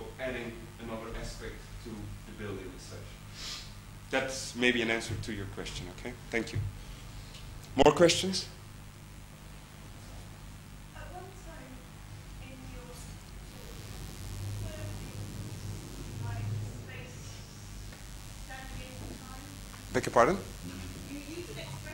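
A man lectures calmly, heard from across a large room.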